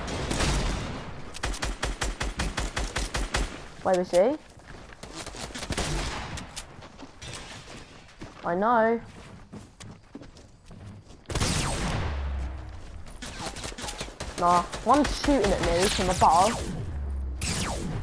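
Rapid gunfire crackles from a video game.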